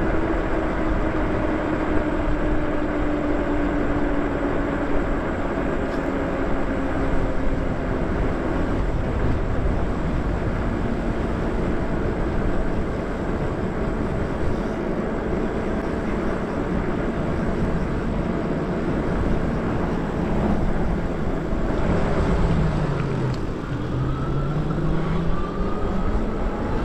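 An electric motor whines steadily, rising and falling in pitch.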